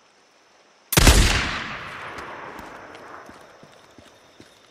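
A rifle fires a single loud shot that echoes and fades.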